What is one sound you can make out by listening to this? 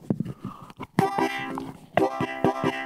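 A harmonica plays a few notes.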